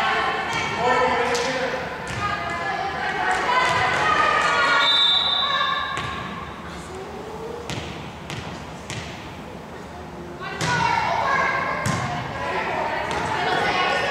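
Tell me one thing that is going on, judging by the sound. Girls shout and cheer loudly in an echoing gym.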